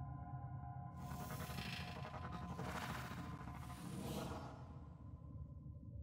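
A spear whooshes through the air as it is swung.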